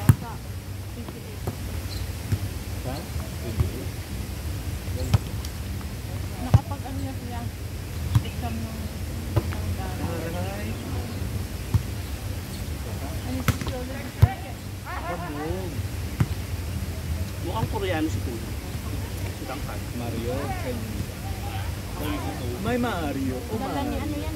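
Young players shout and call out to each other outdoors.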